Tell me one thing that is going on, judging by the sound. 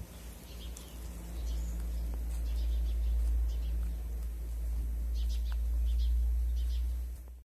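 A hen pecks and scratches in dry leaves.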